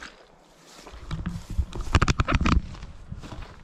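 Footsteps squelch through wet grass.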